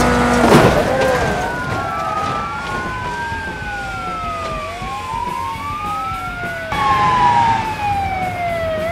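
An ambulance siren wails up and down.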